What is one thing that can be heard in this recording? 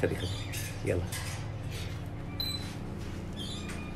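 A small monkey squeaks close by.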